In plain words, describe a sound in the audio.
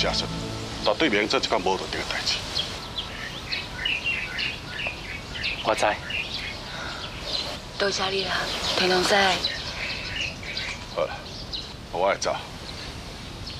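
A middle-aged man speaks firmly close by.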